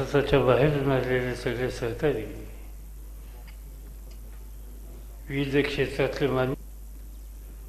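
An elderly man speaks firmly into a microphone over loudspeakers, with pauses.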